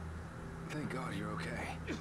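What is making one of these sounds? A man speaks softly with relief.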